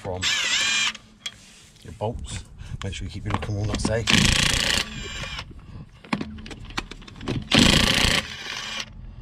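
An impact wrench rattles loudly in short bursts.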